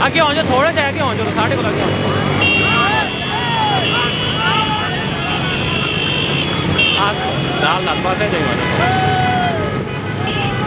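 Motorcycle engines hum as a procession rides slowly past.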